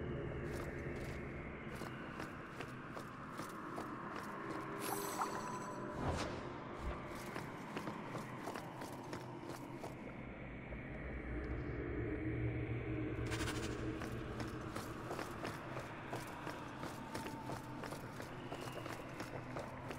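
Footsteps tap on stone, steady and quick.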